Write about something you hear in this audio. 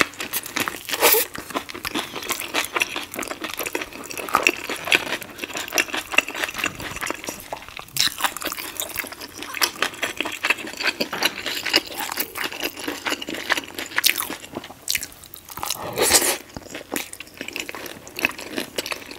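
A woman bites and chews a crisp, wet spring roll close to a microphone.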